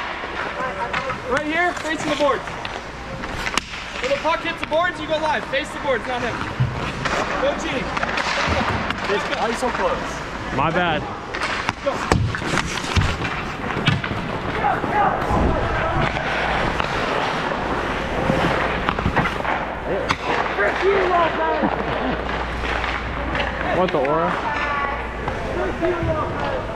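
Young players shout and call out across a large echoing rink.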